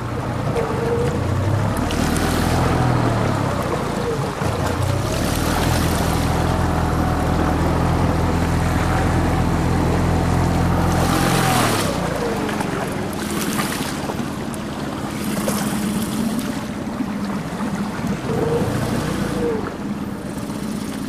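Water rushes and splashes past a boat.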